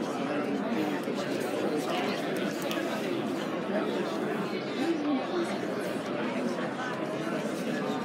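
A large crowd of men and women chatters loudly in an echoing indoor hall.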